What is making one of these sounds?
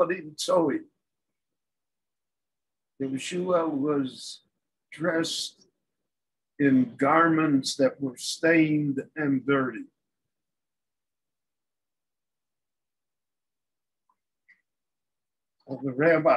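An elderly man speaks calmly and close by, in short phrases with pauses.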